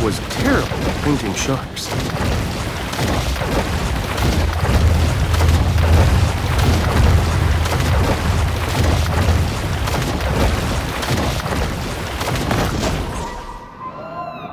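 Water splashes and churns loudly as a shark swims at the surface.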